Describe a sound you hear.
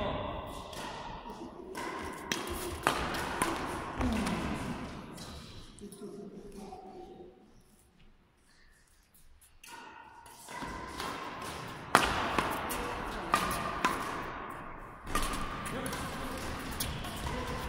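Shoes squeak and patter on a court floor.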